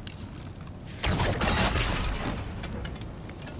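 A crackling magical blast bursts.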